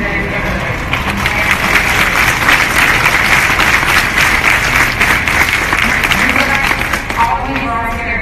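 A crowd cheers and applauds.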